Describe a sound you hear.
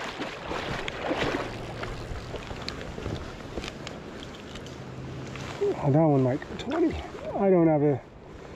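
Shallow river water ripples and splashes close by.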